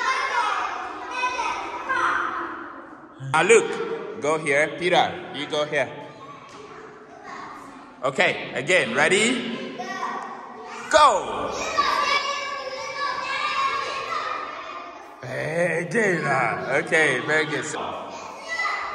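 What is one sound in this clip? Young children talk and call out excitedly nearby in a room with hard, echoing walls.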